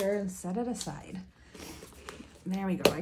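A zipper on a pouch is pulled open.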